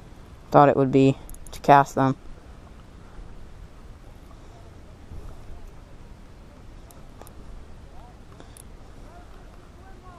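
A fishing reel clicks softly as it is wound in.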